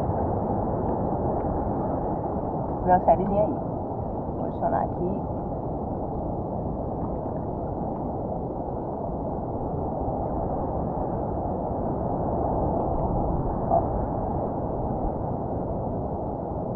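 Water sloshes and laps close by, outdoors on open sea.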